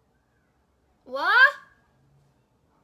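A young woman lets out a loud, rising exclamation.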